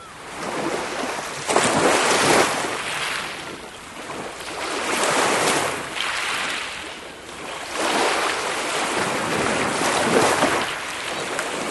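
Small waves wash onto a pebbly shore and draw back in a steady rhythm.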